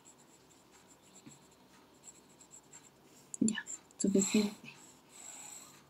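A fountain pen nib scratches softly on paper.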